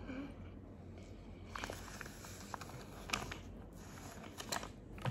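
Paper rustles and crinkles close by.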